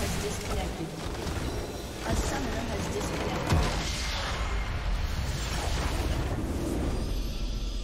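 Game spells and attacks crash and boom loudly in a fight.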